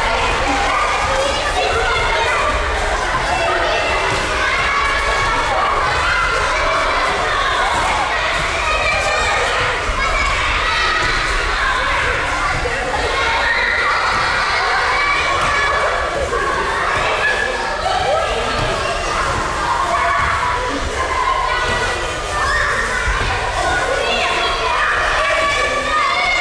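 Bodies thump and feet shuffle on gym mats.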